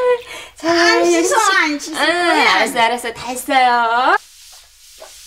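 An elderly woman wails and sobs loudly.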